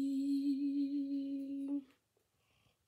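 A young woman sings a note close by.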